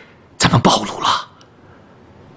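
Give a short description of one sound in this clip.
A middle-aged man speaks urgently nearby.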